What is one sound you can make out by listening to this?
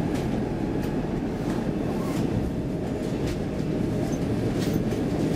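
Wheels clatter and rattle over track joints.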